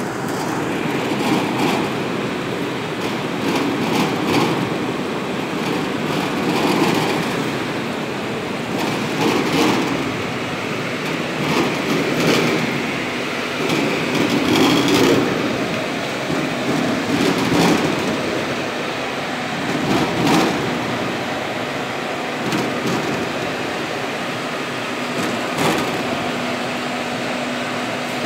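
Machinery hums and rattles steadily in a large, echoing hall.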